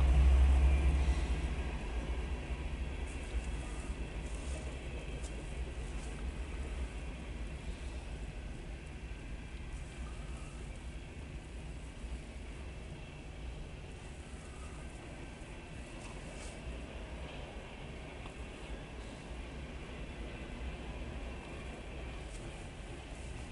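Train wheels clack on the rails.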